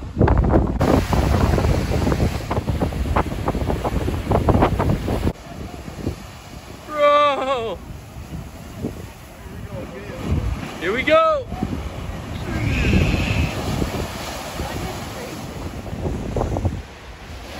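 Waves crash and surge against rocks.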